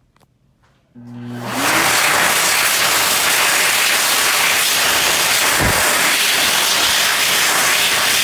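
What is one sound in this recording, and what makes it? A hand dryer starts suddenly and blows with a loud, steady roar.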